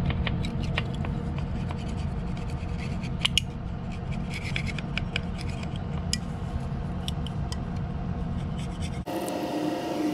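A small metal tool clicks and scrapes against a tyre valve.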